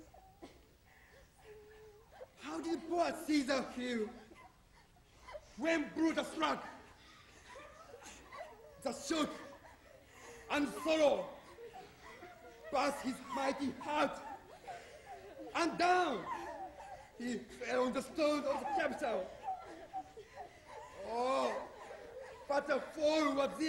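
A group of people weep and sob.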